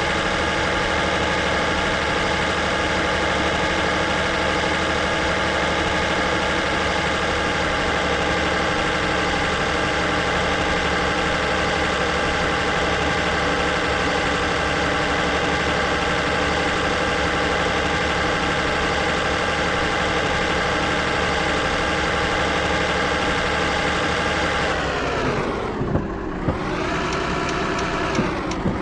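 A heavy truck engine drones steadily, then drops in pitch as it slows.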